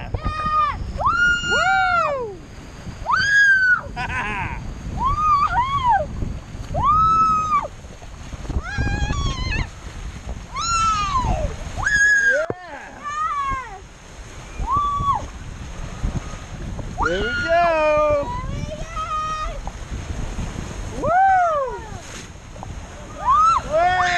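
Water rushes and splashes down a slide.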